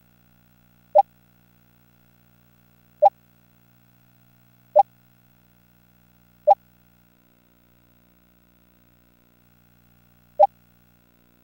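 A short electronic blip sounds several times, a few seconds apart.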